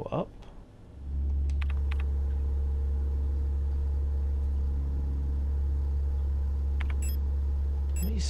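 A low electronic hum drones steadily.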